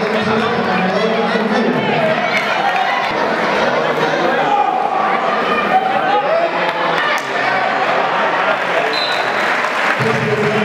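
A large indoor crowd cheers and shouts, echoing in a hall.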